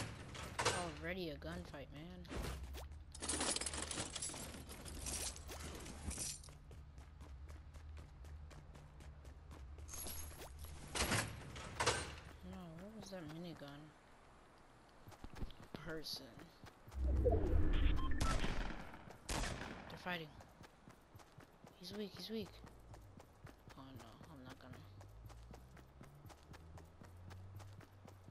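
Footsteps run quickly across hard floors and grass.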